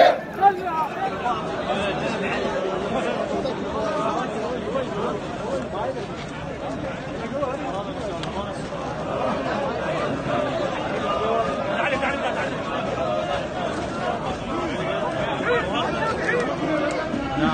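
A large crowd of men talks and murmurs at close range.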